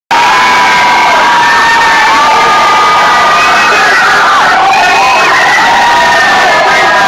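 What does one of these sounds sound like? A large crowd cheers and screams loudly in an echoing hall.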